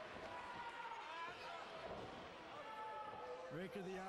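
A body slams down hard onto a wrestling ring mat.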